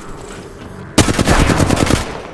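A gun fires in a rapid, loud burst.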